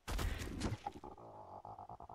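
A creature's feet patter steadily on the ground.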